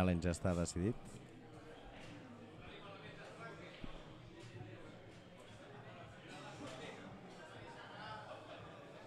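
A pool ball clicks against another ball.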